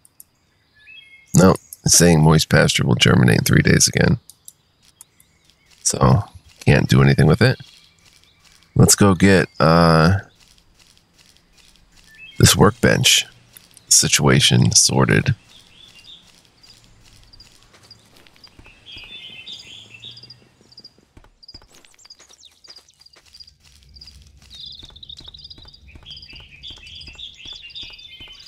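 Footsteps patter softly on the ground.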